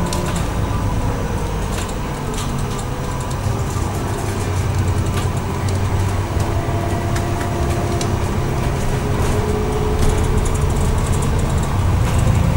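A bus engine rumbles low and steady while driving.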